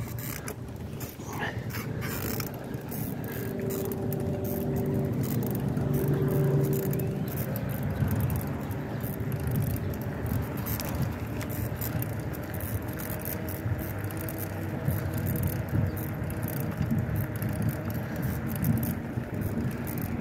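Wind buffets past outdoors while riding.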